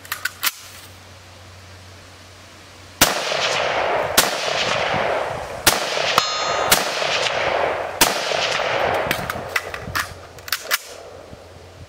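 A rifle fires repeated sharp shots outdoors, each echoing off the surrounding trees.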